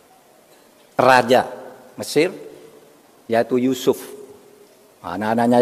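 An older man speaks through a microphone in short bursts, with pauses between phrases.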